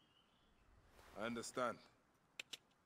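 A deep-voiced man answers briefly and calmly.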